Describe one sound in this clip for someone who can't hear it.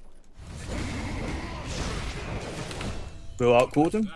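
Game spell blasts and clashing effects rumble loudly.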